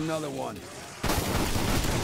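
A weapon blasts with a loud rushing burst.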